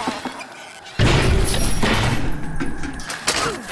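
A plane crashes with a loud rumbling boom.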